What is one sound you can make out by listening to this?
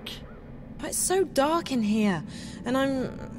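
A young woman speaks nervously and hesitantly.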